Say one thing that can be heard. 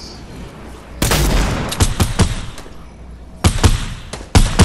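A rifle fires loud shots in short bursts.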